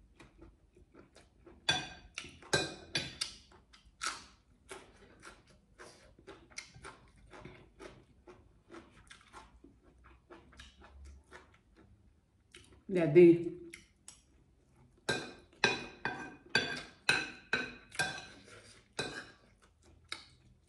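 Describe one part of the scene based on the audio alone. A fork clinks and scrapes against a plate close by.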